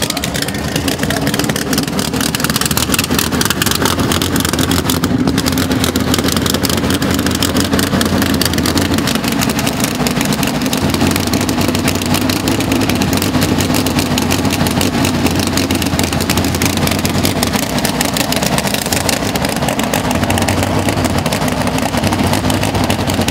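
A drag racing car's engine idles with a rough, heavy rumble.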